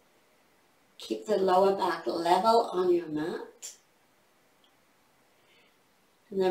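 A woman speaks calmly and clearly into a close microphone.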